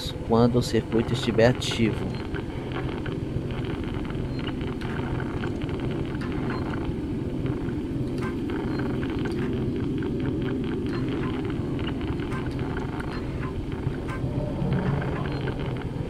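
An electronic terminal hums steadily.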